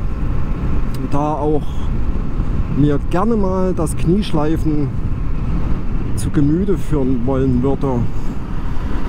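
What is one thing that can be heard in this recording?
A motorcycle engine revs up and drops repeatedly as the gears change.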